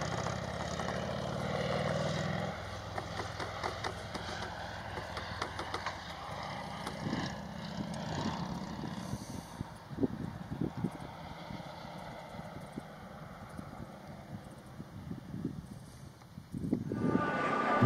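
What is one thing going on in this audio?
A motorcycle engine hums as it rides along a road.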